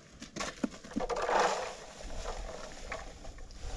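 Loose material pours out of a bucket into a plastic crate with a rustling hiss.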